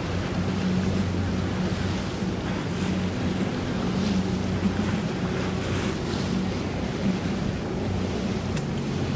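An outboard motor hums as a boat moves across the water.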